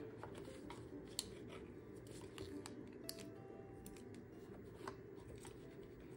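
A plastic case clicks and rattles.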